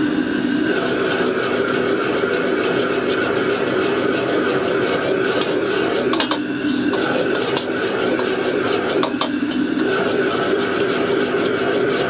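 Vegetables sizzle and crackle in a hot wok.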